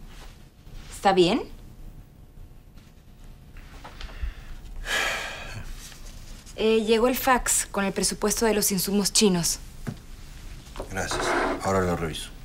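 A man speaks nearby in short remarks.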